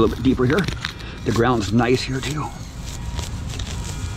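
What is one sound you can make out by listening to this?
A small saw rasps through soil and roots.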